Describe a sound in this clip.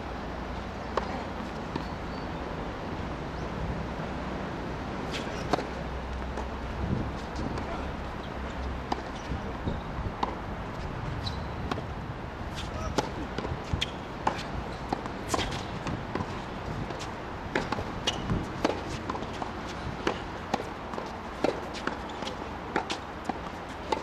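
A tennis ball bounces on a hard court.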